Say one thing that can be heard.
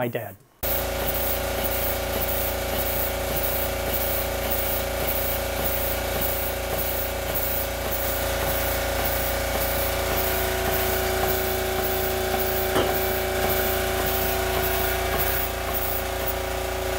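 A small steam engine chugs and hisses steadily.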